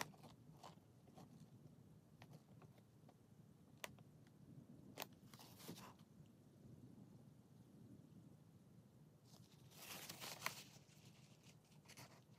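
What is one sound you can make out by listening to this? Fingers press and rub on crinkly plastic film.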